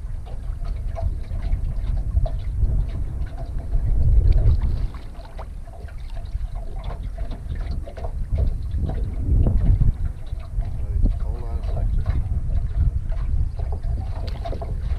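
Water splashes against a net at the side of a boat.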